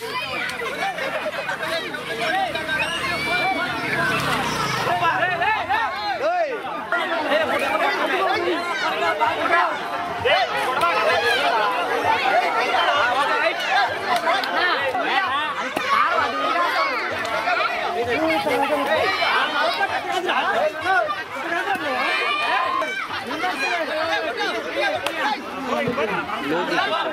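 A large outdoor crowd of men, women and children chatters and shouts excitedly.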